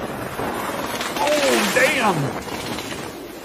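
A helicopter crashes with a loud grinding screech.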